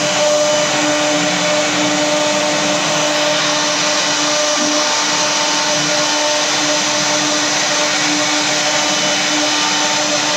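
A machine router whines steadily as it carves wood.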